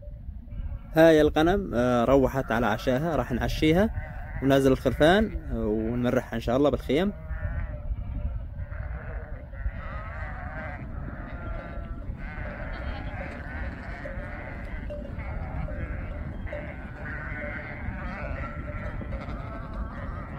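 A large flock of sheep bleats loudly, many voices overlapping.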